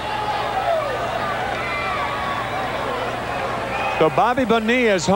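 A large crowd murmurs in a big open stadium.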